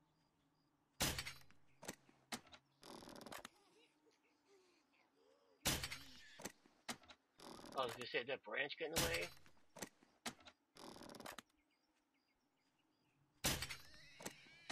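A crossbow fires with a sharp snap, again and again.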